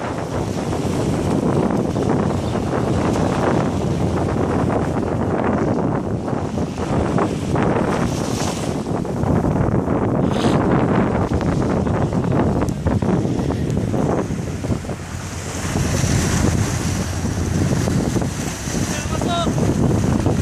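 Wind blusters loudly across the microphone.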